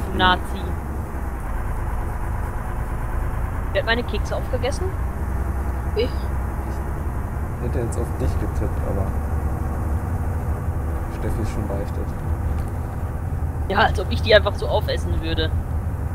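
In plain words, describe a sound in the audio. A heavy truck engine rumbles steadily while driving.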